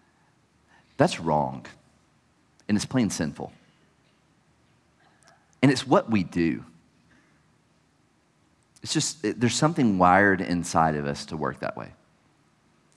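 A man speaks calmly into a microphone in bursts, with pauses between phrases.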